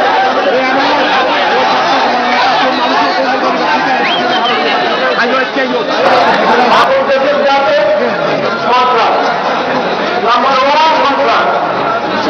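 A middle-aged man speaks forcefully into microphones over loudspeakers, echoing outdoors.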